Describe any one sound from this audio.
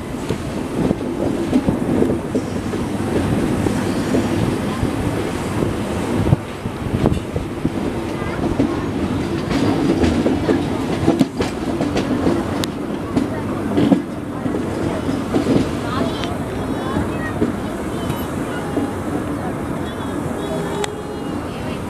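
Wheels of a passenger train rumble and clatter over the rails, heard from an open door.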